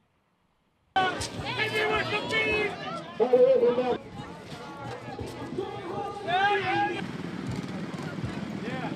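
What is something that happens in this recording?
Riders on floats shout and call out.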